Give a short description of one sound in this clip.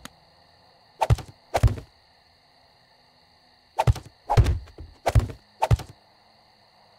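Stone blocks thud heavily into place.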